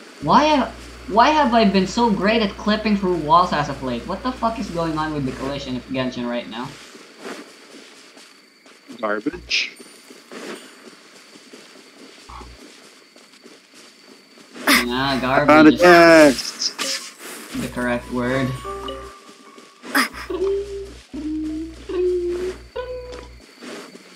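Footsteps swish quickly through tall grass.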